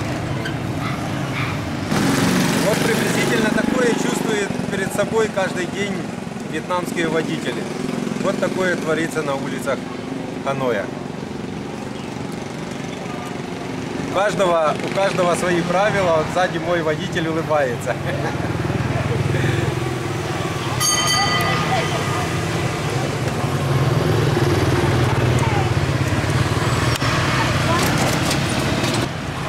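Motorbike engines drone along a busy street.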